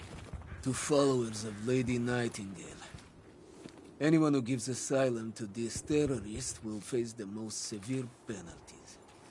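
A man speaks in a low, grim voice nearby.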